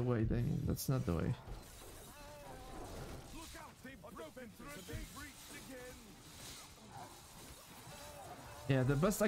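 A young man talks with animation close to a microphone.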